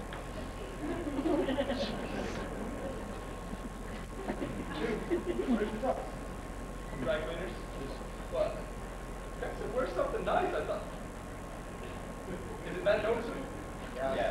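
Men speak on a stage, heard from a distance in an echoing hall.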